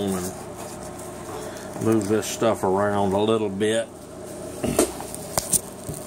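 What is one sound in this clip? Fabric gear rustles and scrapes as a hand handles it.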